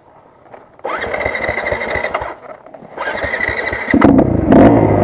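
A dirt bike engine starts up close.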